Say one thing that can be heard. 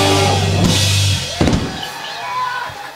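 A crowd cheers and whistles.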